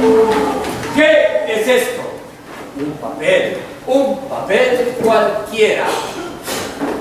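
A man speaks loudly and with animation, echoing in a large hall.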